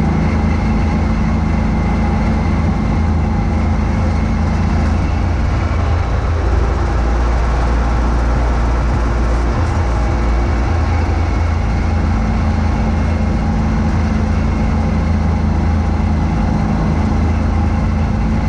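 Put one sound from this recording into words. A snow blower engine roars steadily close by.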